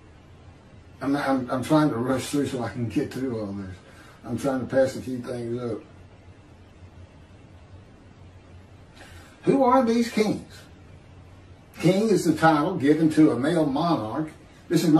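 An elderly man speaks calmly through a microphone, as on an online call.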